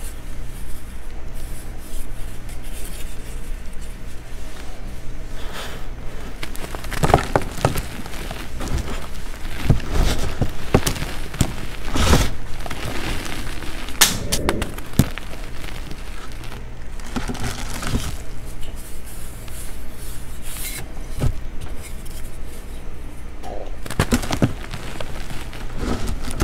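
Hands crush and crumble a dry, chalky block close up.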